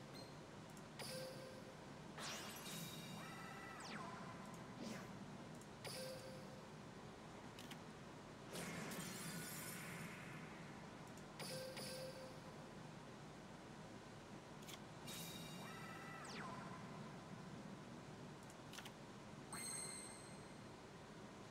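Short electronic chimes and swooshes from a card game sound now and then.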